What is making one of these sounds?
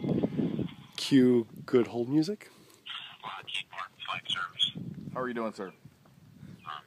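A middle-aged man speaks calmly into a phone close by.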